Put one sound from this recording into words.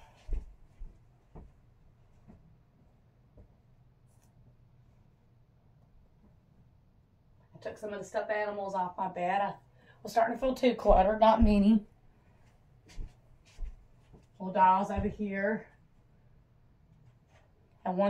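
Soft thumps and rustles come as bedding is handled.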